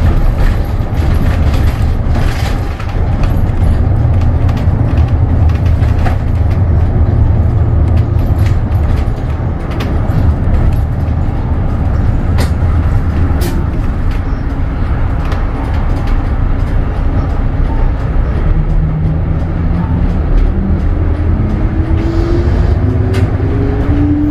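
A bus engine rumbles steadily from inside the cabin.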